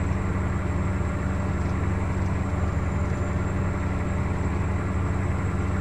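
A truck engine drones steadily at low revs.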